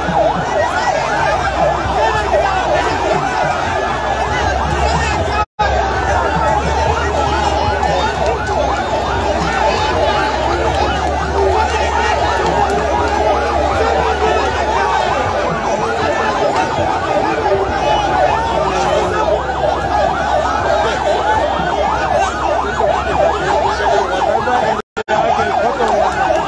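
Many voices in a crowd chant together.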